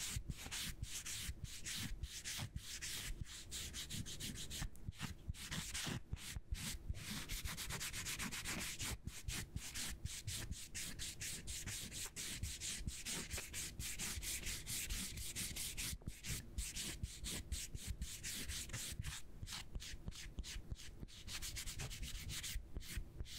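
Hands rub and brush right up close to a microphone with soft crackling and rustling.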